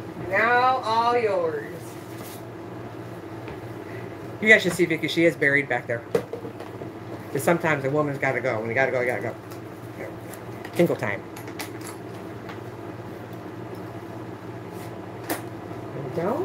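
Handbags rustle and clack as a woman handles them.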